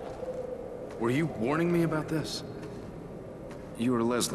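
A man asks a question calmly.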